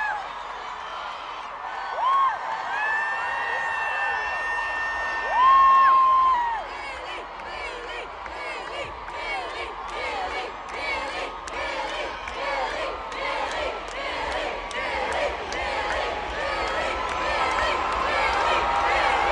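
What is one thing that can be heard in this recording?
A large crowd cheers and screams loudly outdoors.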